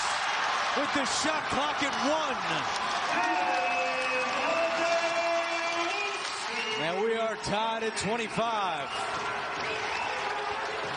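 A large indoor crowd murmurs in an echoing arena.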